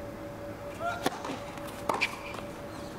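A tennis ball is struck sharply by a racket.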